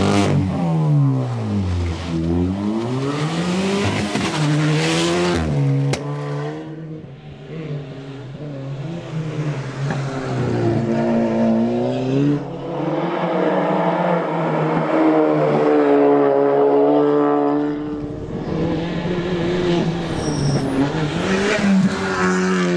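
A rally car engine revs hard, shifting gears as it roars past.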